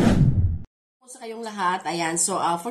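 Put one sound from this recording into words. A middle-aged woman speaks cheerfully close to the microphone.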